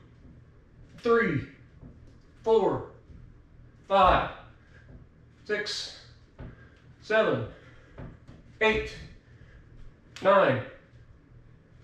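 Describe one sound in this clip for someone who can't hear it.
A man counts aloud in short bursts, close by.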